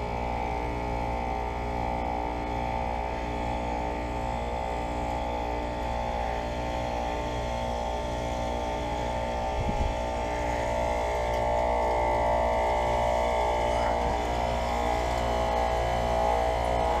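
An air conditioner fan hums and whirs steadily close by.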